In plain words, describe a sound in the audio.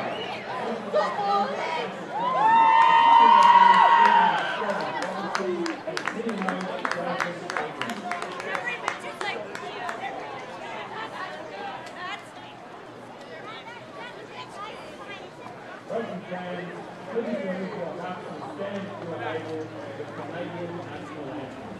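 A crowd of spectators murmurs and chatters outdoors in an open stadium.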